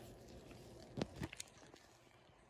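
Coins click softly as they are set down on a hard board.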